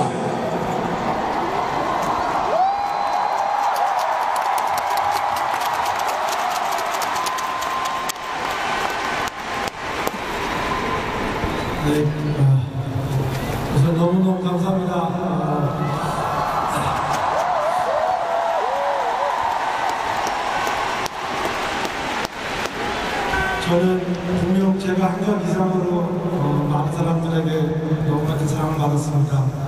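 A crowd cheers and whistles in a large open stadium.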